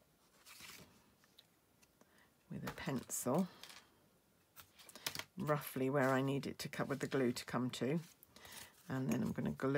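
Stiff card rustles and slides as it is handled.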